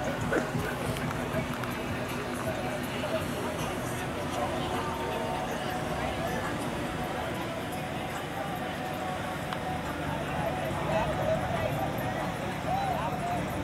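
A crowd chatters and calls out in the distance.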